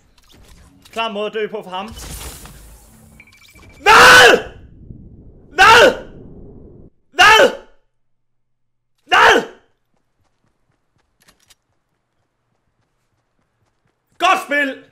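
A man shouts loudly in surprise close to a microphone.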